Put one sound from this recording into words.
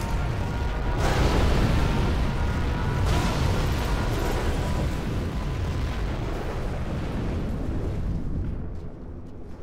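Huge explosions boom and rumble one after another.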